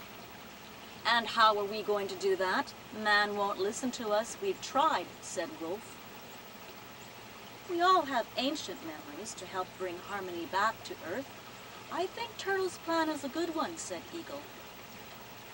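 A middle-aged woman speaks calmly and expressively close by.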